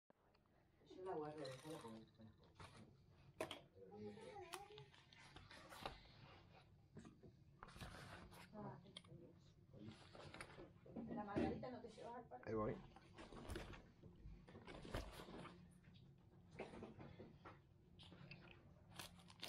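Fabric rustles softly as a bag is handled.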